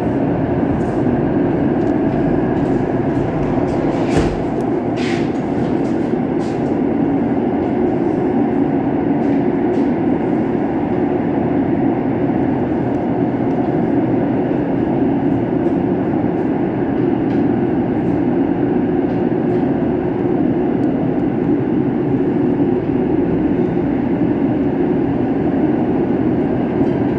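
A train rumbles steadily along the tracks through a tunnel.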